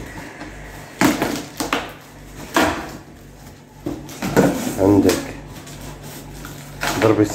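Cardboard rustles and thumps as a box is handled close by.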